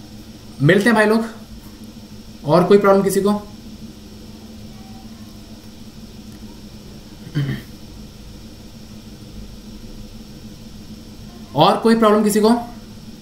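A young man speaks calmly in short phrases close to a microphone, with long pauses.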